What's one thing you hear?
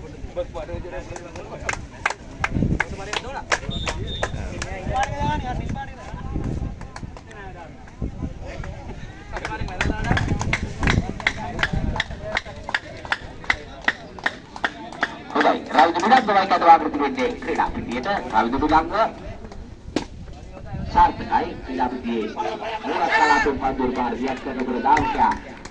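Young men talk and call out nearby, outdoors.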